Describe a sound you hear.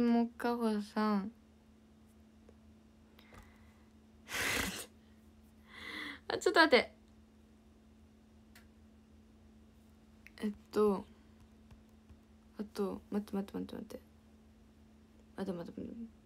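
A young woman talks cheerfully and close to a microphone, in short bursts with pauses.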